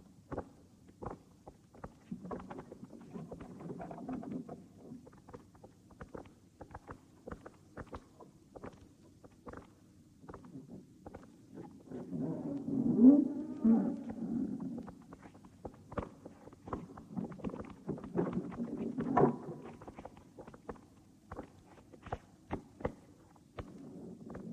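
Footsteps shuffle and knock on a hard floor.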